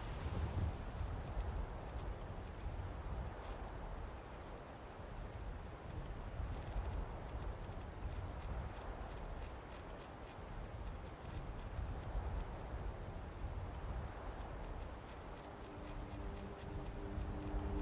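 Short soft menu clicks tick one after another.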